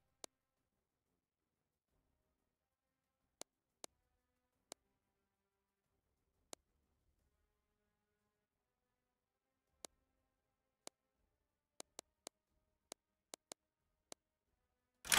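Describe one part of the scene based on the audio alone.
Soft menu clicks tick one at a time.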